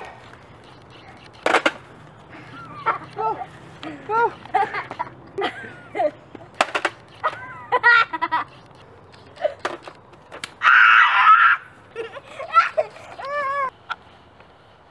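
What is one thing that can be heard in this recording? A young girl laughs and shrieks with excitement outdoors.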